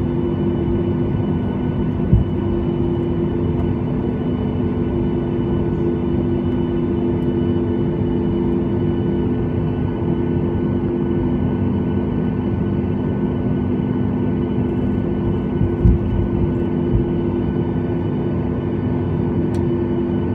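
Jet engines hum steadily inside an airliner cabin as it taxis.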